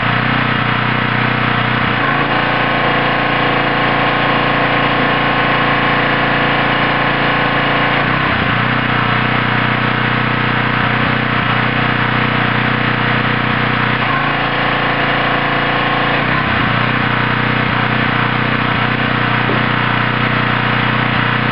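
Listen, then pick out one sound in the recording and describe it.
A small petrol engine runs steadily nearby.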